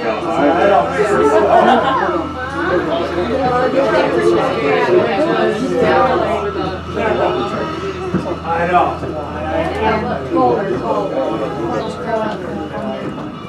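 Several adult passengers chat inside an incline railway car.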